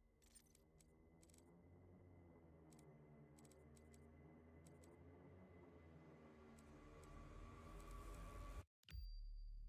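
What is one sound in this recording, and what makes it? A woman speaks quietly close to a microphone.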